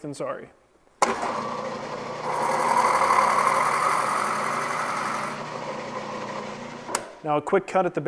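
A drill press whirs as it bores into wood.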